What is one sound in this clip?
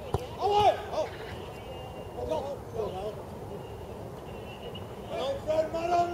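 Players shout to each other outdoors at a distance.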